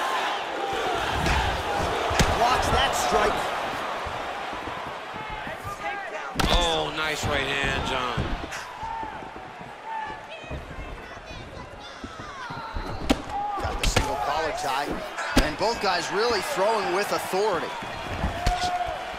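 Blows land with sharp thuds.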